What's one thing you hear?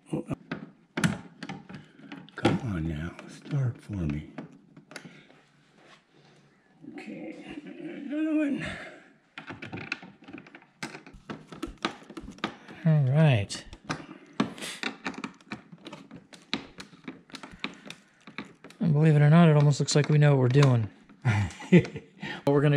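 Small plastic clips click and snap as a trim panel is pried loose.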